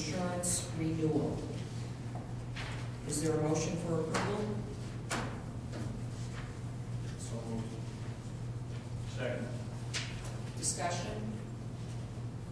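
A middle-aged woman speaks calmly into a microphone in a large echoing room.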